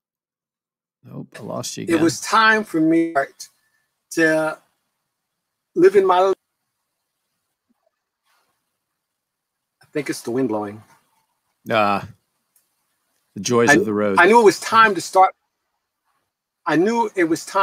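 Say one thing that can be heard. A man talks calmly over an online call, with pauses.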